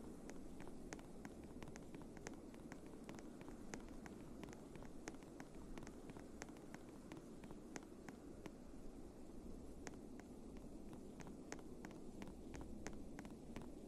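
Wind howls steadily in a snowstorm.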